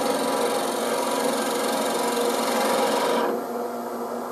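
A chisel scrapes and shaves spinning wood.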